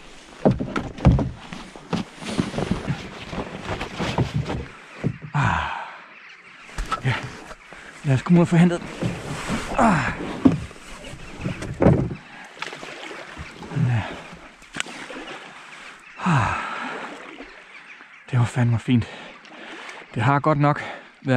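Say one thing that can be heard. Water laps and splashes against a small boat's hull.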